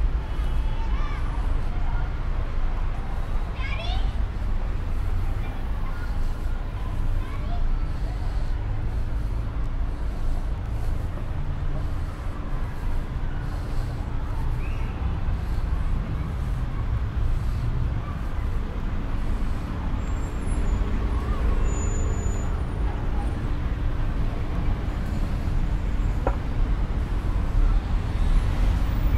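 City traffic hums steadily in the distance, outdoors on a street.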